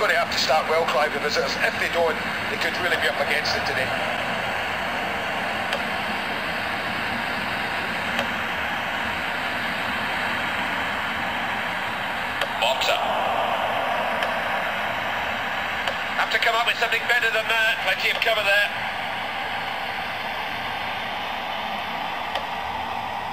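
A crowd roars steadily through a small phone speaker.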